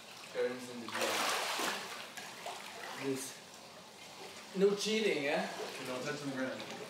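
Water splashes as a young man wades through a pool.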